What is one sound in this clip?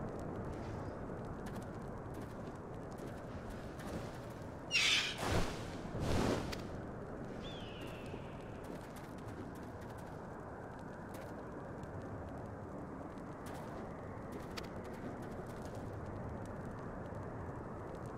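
A campfire crackles steadily.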